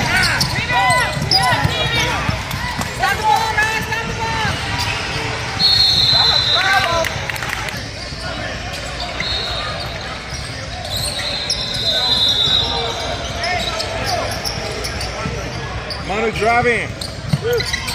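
Sneakers squeak sharply on a court in a large echoing hall.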